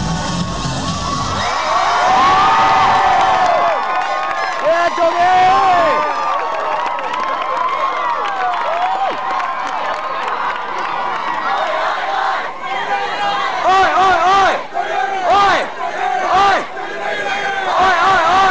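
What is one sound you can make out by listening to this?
A large crowd of young people cheers and shouts outdoors.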